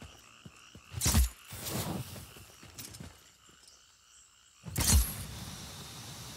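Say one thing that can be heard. A grappling line fires with a sudden whoosh.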